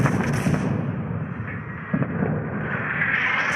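Shells splash into water.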